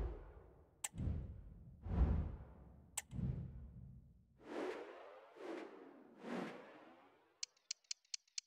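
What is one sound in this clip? Soft whooshing swells rise and fall.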